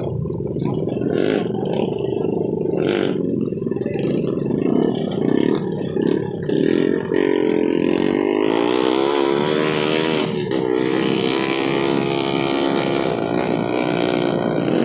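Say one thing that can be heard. Several dirt bike engines idle and rev loudly close by.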